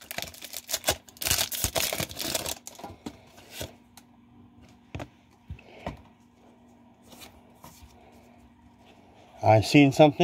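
Playing cards rustle and flick up close.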